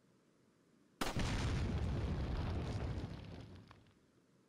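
A pistol fires once, with a loud echoing boom.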